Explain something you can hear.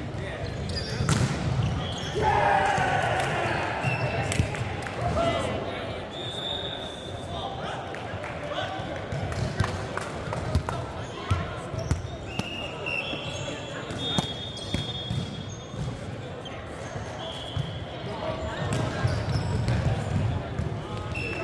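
Young men call out and talk loudly.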